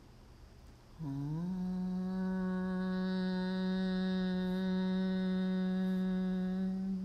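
A woman chants one long, steady humming note.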